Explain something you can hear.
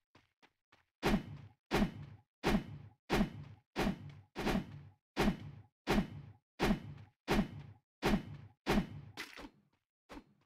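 Footsteps thud evenly on the ground.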